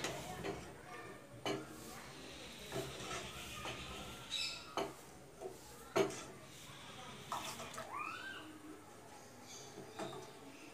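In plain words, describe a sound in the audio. A wooden spatula scrapes and knocks against a metal pot.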